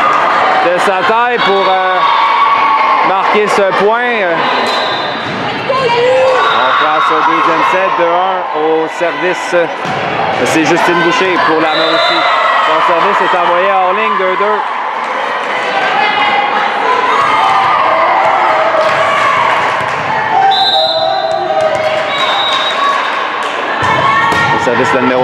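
A volleyball is struck with sharp slaps.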